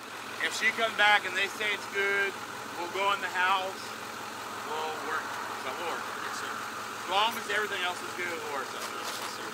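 A man talks calmly nearby outdoors.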